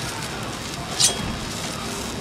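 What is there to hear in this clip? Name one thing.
A thrown blade whooshes as it is launched.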